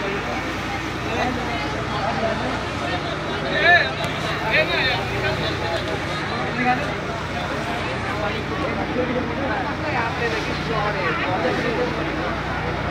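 A boat's engine drones steadily.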